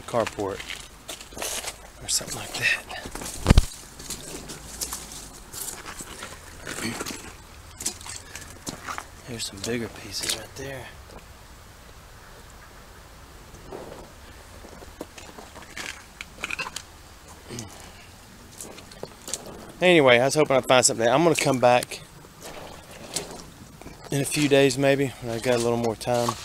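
Footsteps crunch on loose stones and gravel.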